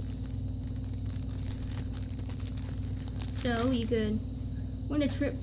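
A foil wrapper crinkles as it is handled.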